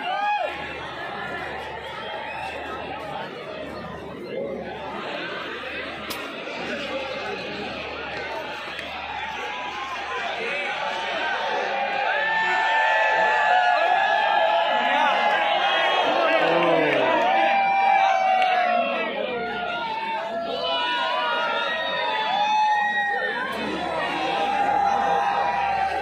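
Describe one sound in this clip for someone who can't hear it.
Men talk nearby among a jostling crowd.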